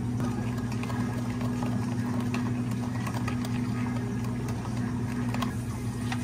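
A spoon stirs and clinks in a plastic cup.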